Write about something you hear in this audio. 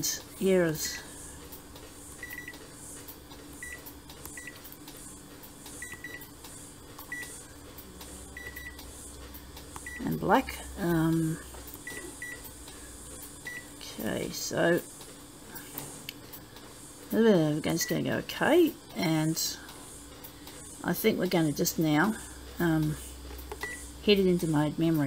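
A touch panel beeps briefly with each tap of a finger.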